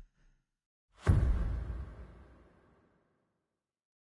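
A deep boom sounds as a countdown ends and slowly fades.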